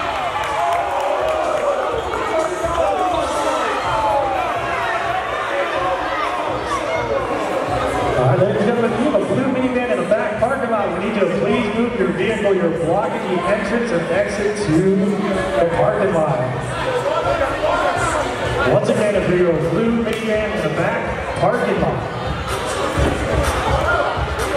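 A crowd of spectators chatters steadily in an echoing gym.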